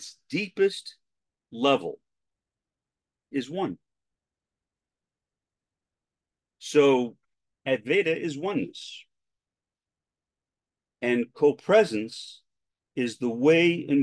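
A middle-aged man talks calmly into a microphone, heard as if over an online call, with long pauses.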